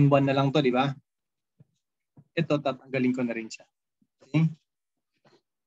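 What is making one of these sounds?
A young man speaks calmly into a microphone, explaining in short bursts.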